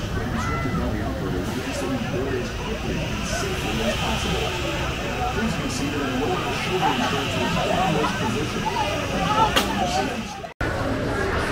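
Riders scream on a drop ride outdoors.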